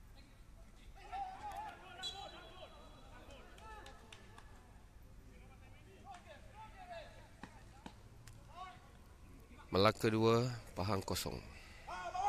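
Young men shout to each other across a large open sports ground.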